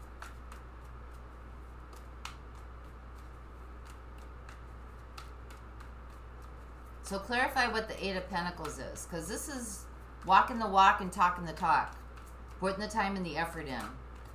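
Playing cards shuffle softly in a woman's hands.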